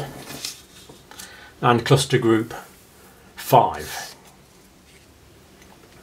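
Paper strips slide and rustle across a tabletop.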